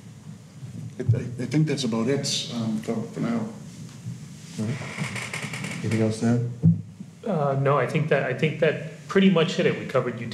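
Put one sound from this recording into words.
An older man speaks calmly into a handheld microphone in an echoing hall.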